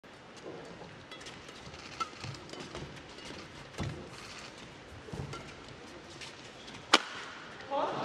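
Rackets smack a shuttlecock back and forth in a fast rally.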